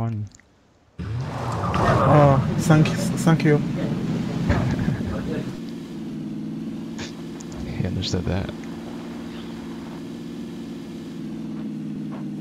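A car engine starts and drones steadily while driving.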